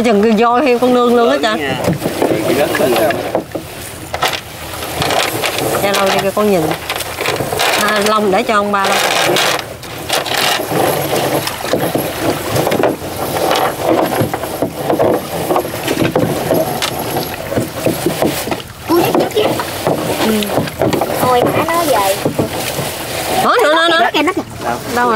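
Water splashes as a man wades and hauls a net.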